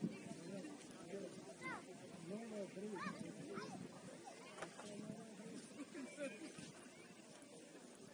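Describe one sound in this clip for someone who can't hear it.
Distant players shout to each other across an open field.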